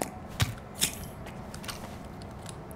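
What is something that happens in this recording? A rifle clicks and clacks as it is readied.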